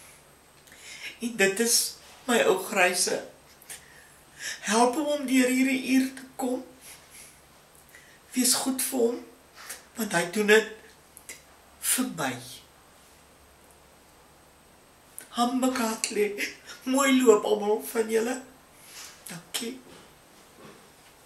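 An elderly woman speaks calmly and close by, in short phrases with pauses.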